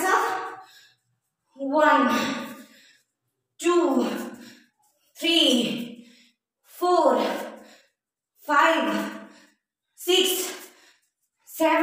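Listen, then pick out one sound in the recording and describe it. A young woman speaks clearly in short, evenly spaced phrases close by, with a slight room echo.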